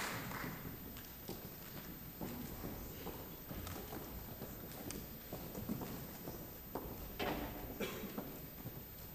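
An audience murmurs and shuffles quietly.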